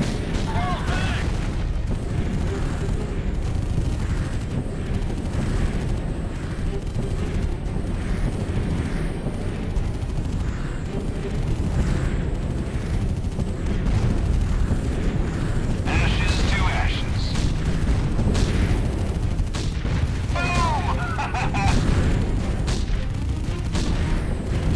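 Cannons fire again and again.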